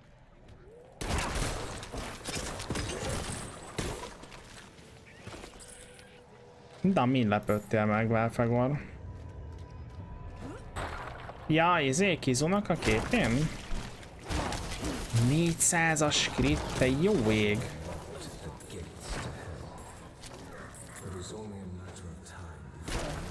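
Game combat clashes and thuds play.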